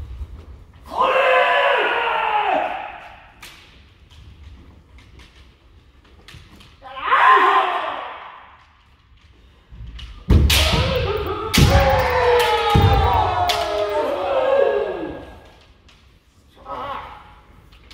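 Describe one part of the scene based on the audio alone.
Several young men shout fierce battle cries loudly in a large echoing hall.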